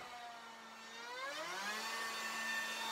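A power router motor spins back up, its pitch rising.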